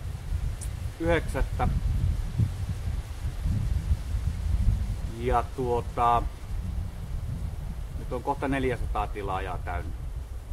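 A man speaks calmly and close by in short bursts.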